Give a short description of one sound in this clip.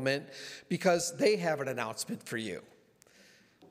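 A middle-aged man speaks with animation into a microphone in a large room.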